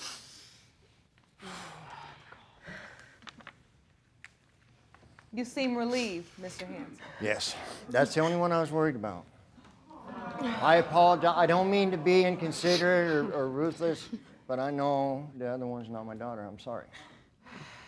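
A middle-aged man speaks with emotion.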